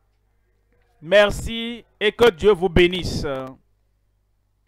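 A man sings loudly through a loudspeaker.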